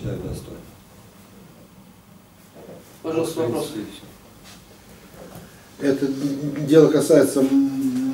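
A man speaks calmly into a microphone, in pauses.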